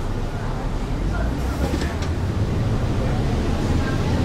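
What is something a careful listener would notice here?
A bus engine revs up as the bus pulls away.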